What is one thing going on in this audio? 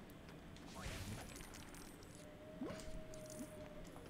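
Coins jingle as they are collected.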